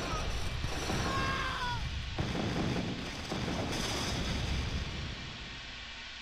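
Gunfire and explosions rattle in a loud battle.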